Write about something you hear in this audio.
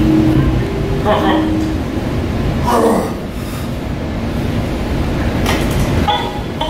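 A man grunts with effort while lifting.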